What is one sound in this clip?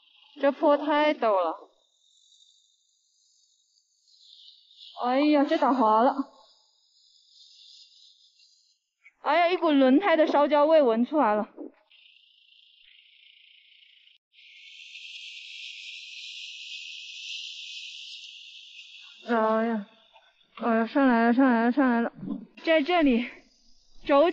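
A young woman talks with animation close by, exclaiming now and then.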